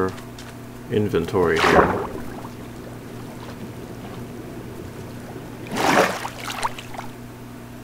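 A game character splashes while swimming in water.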